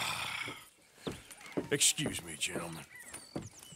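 A man speaks politely, close by.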